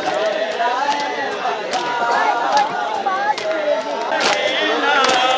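A crowd of young men chants loudly in unison outdoors.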